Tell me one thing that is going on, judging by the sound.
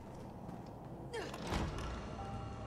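A heavy door swings open.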